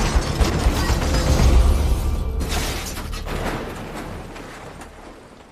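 A heavy rumble and crash sound as a car tumbles down a wooded slope.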